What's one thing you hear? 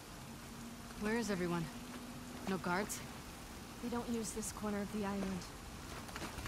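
A young woman answers calmly at a lower volume.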